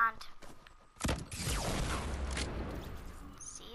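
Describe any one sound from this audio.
Fireworks whoosh and crackle.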